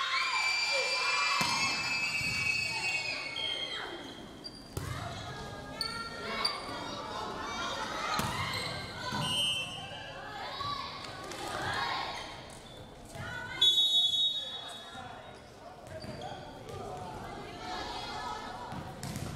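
Young women players call out and shout to each other in a large echoing hall.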